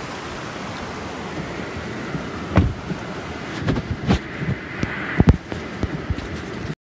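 Heavy rain pours down steadily on a car.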